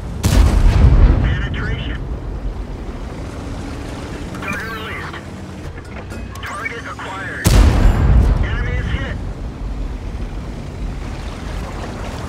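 Water splashes as a tank drives through a river.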